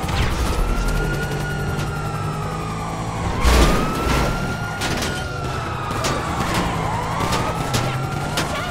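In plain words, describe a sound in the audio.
A car engine roars as it speeds along.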